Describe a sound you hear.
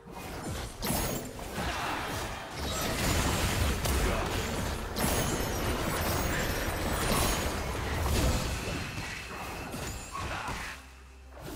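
Magic spells blast and crackle in a fast fight between game characters.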